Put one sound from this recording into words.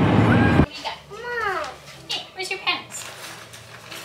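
A young boy talks and squeals excitedly nearby.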